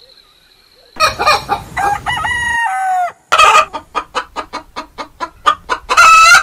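Chickens cluck and squawk loudly close by.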